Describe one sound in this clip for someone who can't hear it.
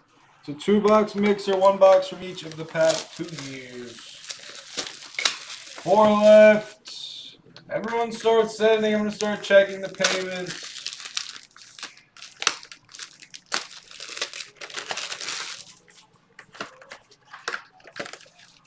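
Cardboard boxes rustle and tap as hands handle them.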